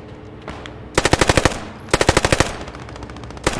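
A submachine gun fires short rapid bursts close by.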